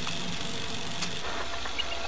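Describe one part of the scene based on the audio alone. A small robot rolls along on whirring wheels.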